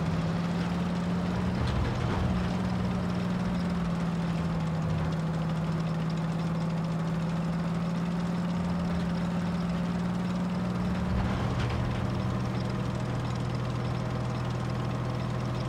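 A tank engine rumbles and drones steadily.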